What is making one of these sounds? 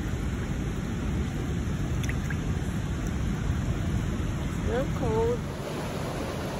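A shallow stream trickles and splashes over rocks.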